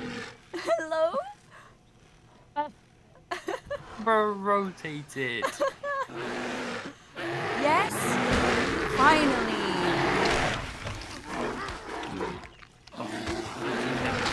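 A bear growls and roars loudly.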